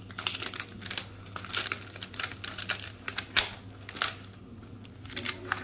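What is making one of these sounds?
A plastic wrapper crinkles and rustles as hands pull it off.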